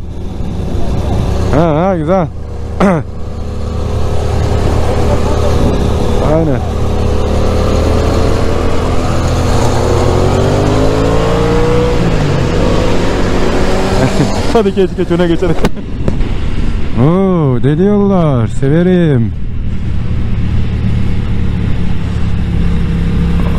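A motorcycle engine hums steadily, revving up and down as it rides.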